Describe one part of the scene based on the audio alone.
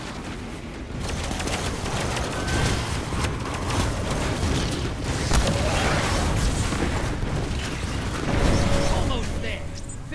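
Rapid gunshots fire in a video game.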